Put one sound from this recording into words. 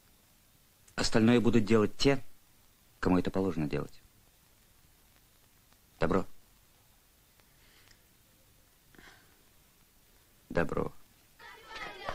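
A man speaks calmly, heard through a recording.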